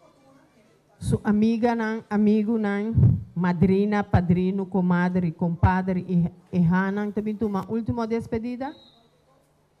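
A woman sings into a microphone through a loudspeaker.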